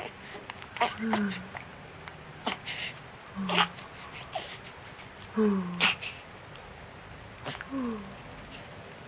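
A newborn baby makes soft little whimpers and coos.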